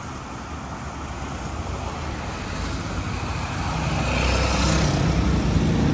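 A van drives past on the road.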